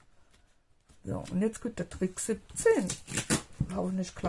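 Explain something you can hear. Adhesive tape is pulled off a roll with a rasping sound.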